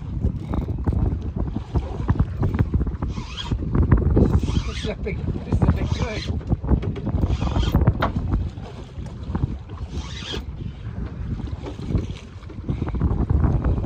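Choppy waves slap and splash against a small boat's hull.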